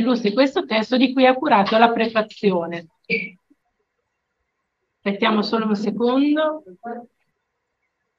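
A woman speaks calmly over an online call, in two short bursts.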